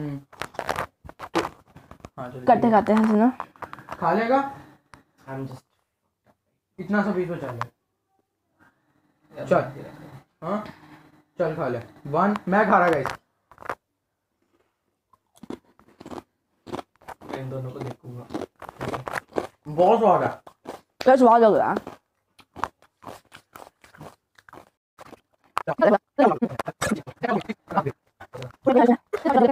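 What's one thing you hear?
Teenage boys talk and laugh with animation close by.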